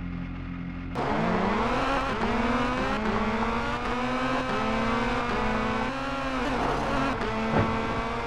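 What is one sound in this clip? A rally car engine revs hard, rising and dropping in pitch as it shifts through gears.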